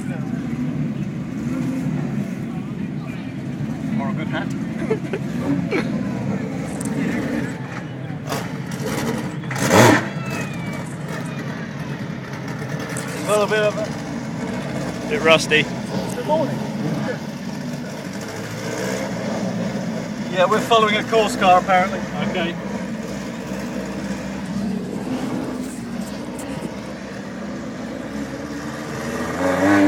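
A racing car engine rumbles steadily nearby outdoors.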